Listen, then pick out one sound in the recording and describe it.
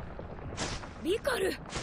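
A young woman shouts out sharply.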